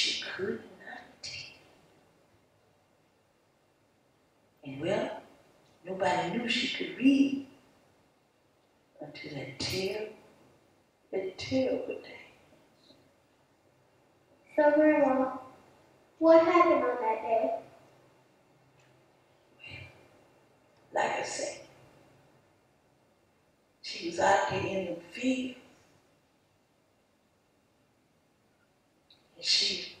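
A woman speaks expressively, with pauses between phrases.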